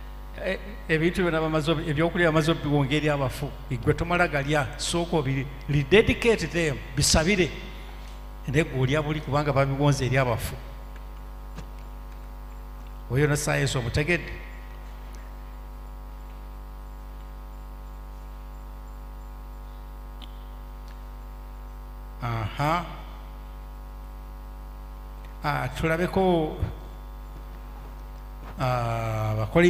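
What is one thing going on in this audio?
A man speaks with feeling through a microphone, in bursts with long pauses.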